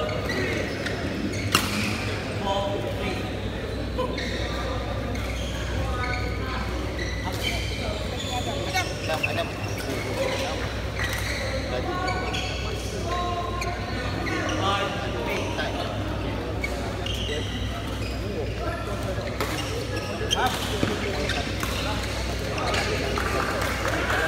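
Several men and women talk and call out nearby in a large echoing hall.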